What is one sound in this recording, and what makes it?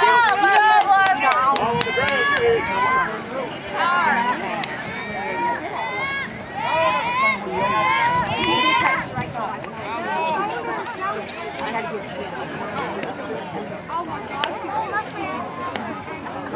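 Women and children in a crowd chatter nearby.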